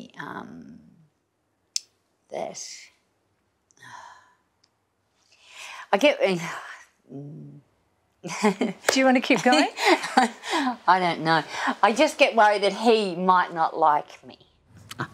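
A middle-aged woman speaks with emotion, heard through an old recording.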